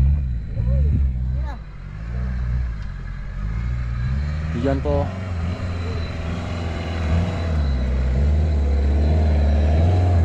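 An excavator engine idles.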